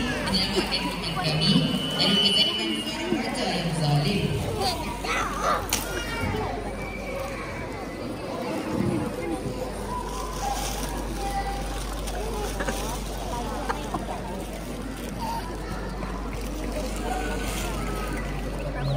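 An audience murmurs and chatters nearby.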